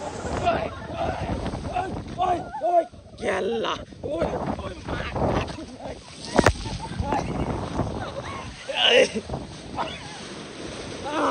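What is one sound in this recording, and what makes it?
A man shouts and yells excitedly close up.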